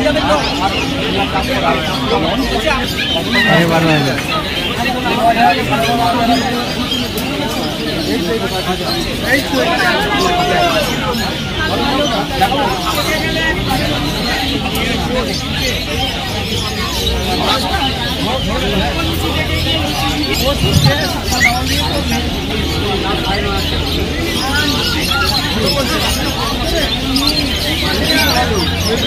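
Men and women chatter in a busy crowd outdoors.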